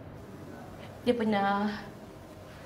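A woman speaks with animation, close by.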